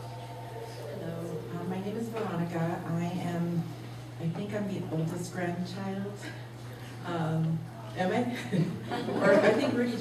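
A woman speaks calmly into a microphone over loudspeakers in a room.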